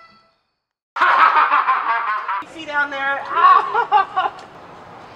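A young woman talks excitedly.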